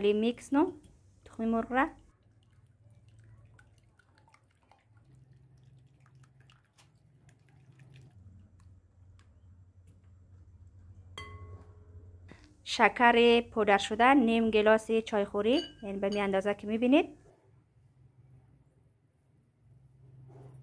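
A wire whisk beats eggs against a glass bowl.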